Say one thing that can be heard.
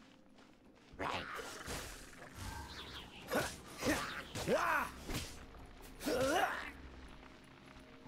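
Sword slashes and fiery blasts crackle.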